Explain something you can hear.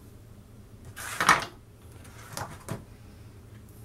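A baking dish scrapes across a countertop.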